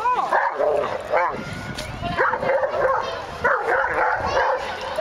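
A young girl shouts excitedly outdoors.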